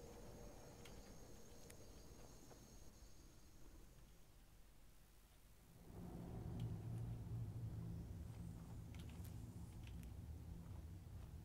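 Flames crackle and hiss softly close by.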